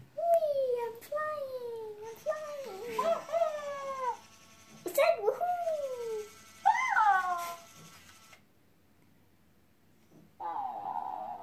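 A young girl exclaims with excitement close by.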